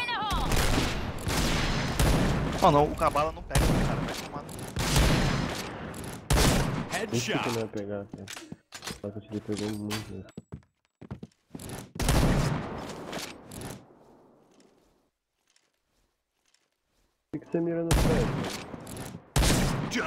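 A rifle fires a loud, sharp shot.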